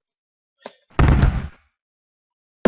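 A short explosion bursts from a video game.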